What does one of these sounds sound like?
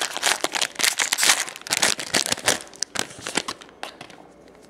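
Foil wrappers crinkle loudly.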